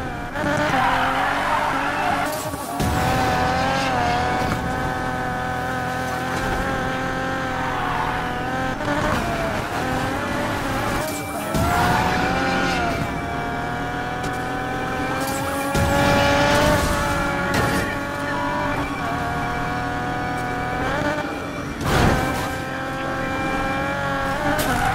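A sports car engine roars and revs up and down at high speed.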